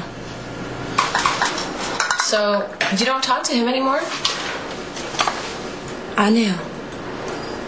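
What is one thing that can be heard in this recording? A young woman answers softly close by.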